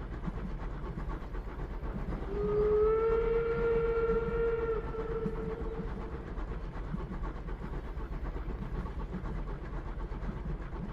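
A train's wheels rumble and clack over the rails through a tunnel.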